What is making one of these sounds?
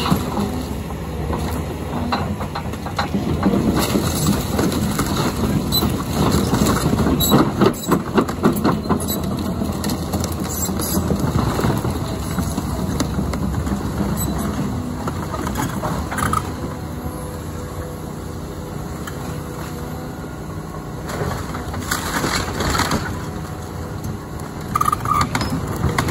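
A diesel excavator engine rumbles steadily nearby.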